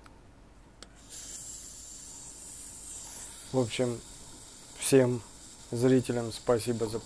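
A gas torch flares up and roars loudly.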